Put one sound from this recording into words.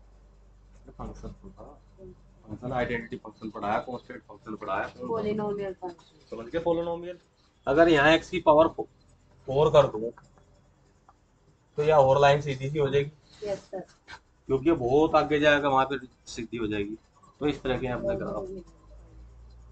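A man lectures nearby, speaking calmly in pauses.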